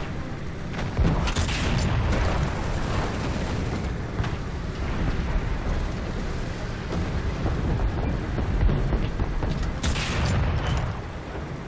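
Shells explode nearby with heavy booms.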